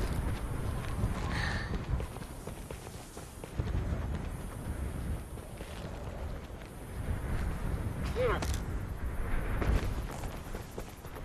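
Flames roar and whoosh in low bursts.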